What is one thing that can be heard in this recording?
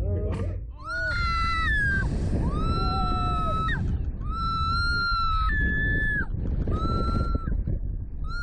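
A young woman screams loudly and long, again and again.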